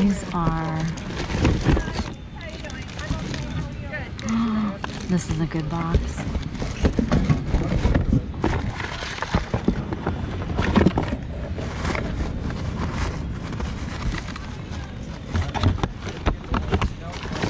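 Objects clatter and thud against a cardboard box.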